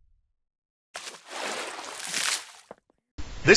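Liquid splashes and spills across a hard floor.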